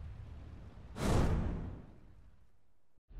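A quick whoosh sweeps past.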